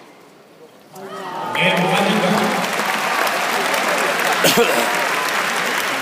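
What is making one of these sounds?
A large crowd applauds in a big echoing arena.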